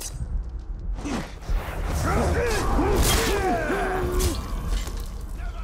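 A sword swishes and strikes in a fight.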